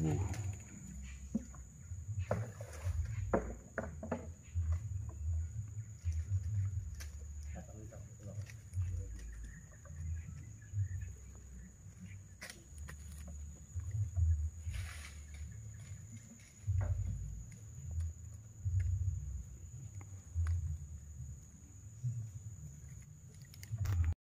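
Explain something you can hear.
A wooden pole knocks against the side of a boat.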